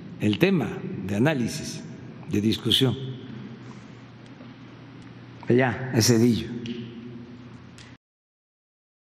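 An elderly man speaks calmly into a microphone in a large echoing room.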